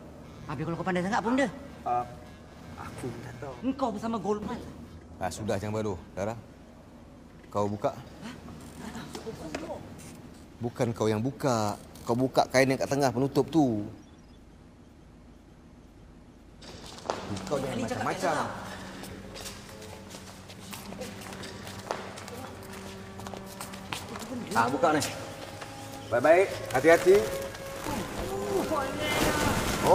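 Young men and women talk excitedly, close by.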